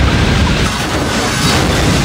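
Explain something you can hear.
Metal grinds and scrapes.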